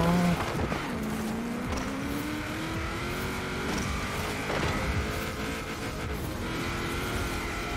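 A rally car engine revs and rises in pitch as the car speeds up.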